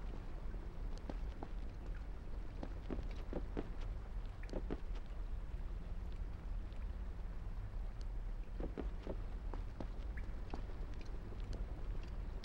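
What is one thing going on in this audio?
Footsteps tap and scuff on stone floors.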